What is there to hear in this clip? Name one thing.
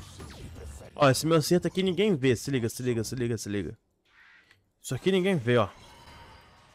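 A young man talks loudly and with animation into a microphone.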